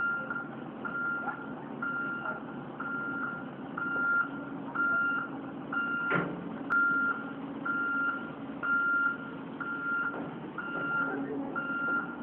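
A heavy diesel engine idles with a steady low rumble.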